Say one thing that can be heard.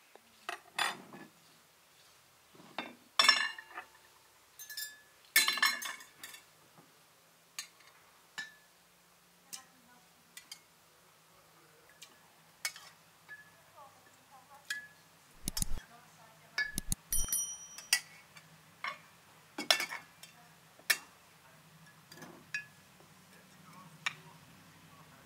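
Dishes knock and clatter on a wooden table.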